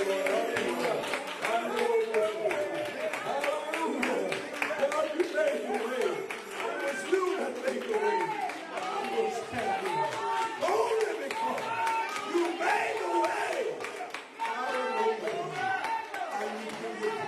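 Several men sing together through microphones.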